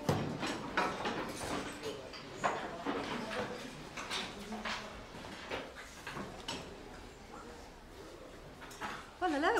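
Children and teenagers chatter noisily in a room.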